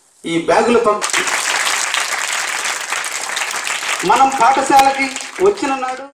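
Children clap their hands in applause.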